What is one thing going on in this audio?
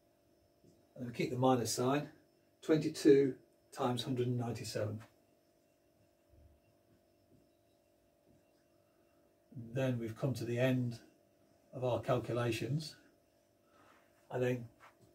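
A middle-aged man speaks calmly nearby, explaining.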